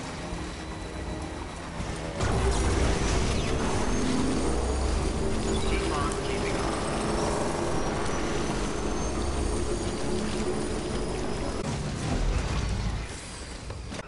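A motorbike engine hums and roars over rough ground.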